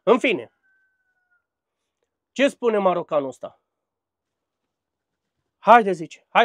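A man speaks calmly and closely, in short phrases with pauses.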